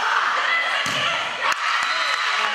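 A volleyball is struck with a sharp smack in a large echoing gym.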